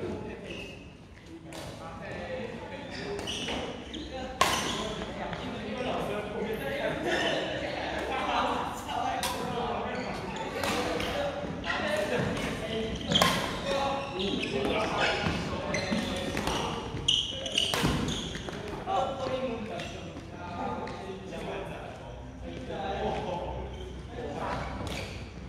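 Sneakers squeak and shuffle on a wooden floor.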